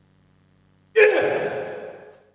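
A blow lands on a man's body.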